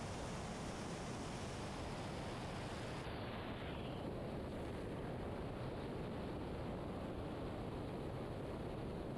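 Liquid sprays and splashes hard and steadily.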